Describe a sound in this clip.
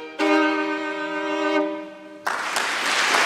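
A violin plays a melody close by.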